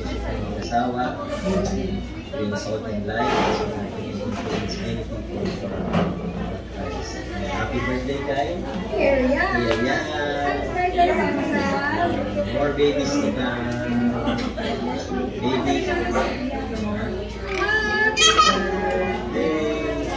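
A young woman talks calmly nearby.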